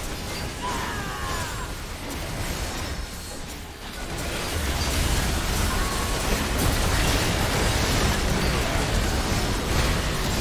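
Game spell effects whoosh and crash during a fight.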